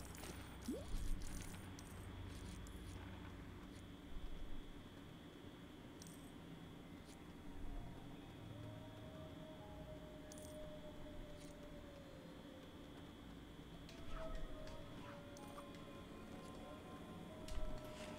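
Small game coins jingle as they are picked up.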